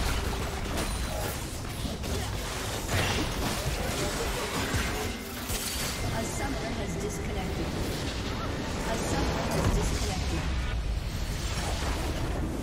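Magic blasts and clashing weapons crackle and thump in a busy battle.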